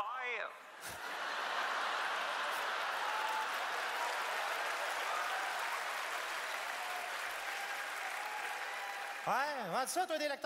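A large audience applauds.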